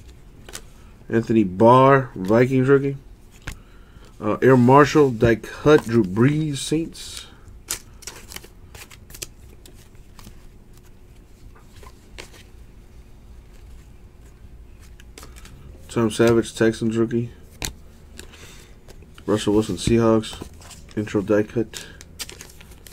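Stiff trading cards slide and rustle against each other in a person's hands.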